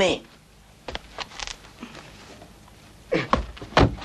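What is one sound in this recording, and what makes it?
A curtain rustles as it is pulled aside.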